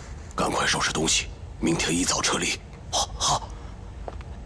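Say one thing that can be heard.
An older man speaks urgently in a low voice.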